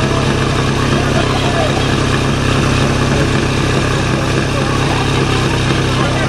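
A fire pump engine runs loudly and steadily close by.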